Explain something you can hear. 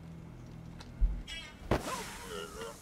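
A heavy blow lands with a thud in a struggle.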